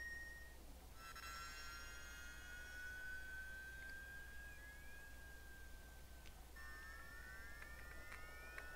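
Thin electronic tones hum and slide slowly in a retro video game.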